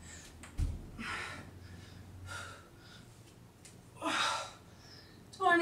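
A woman breathes out hard with effort.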